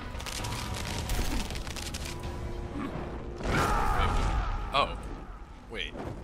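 Flames burst and roar in a loud fiery explosion.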